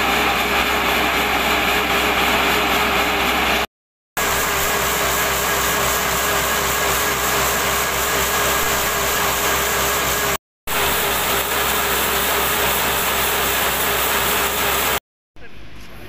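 A diesel engine runs loudly with a steady roar.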